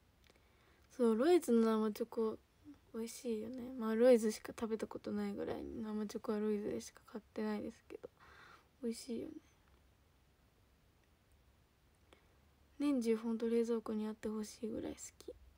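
A young woman speaks calmly and close by into a microphone.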